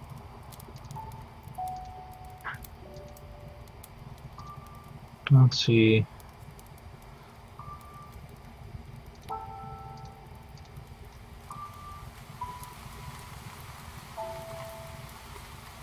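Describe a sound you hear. Short soft electronic blips chime now and then.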